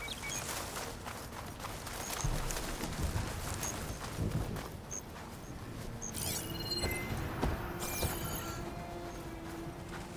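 Footsteps run and rustle through dry grass.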